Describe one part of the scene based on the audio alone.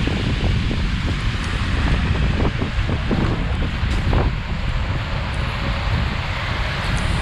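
City traffic rumbles steadily along a street.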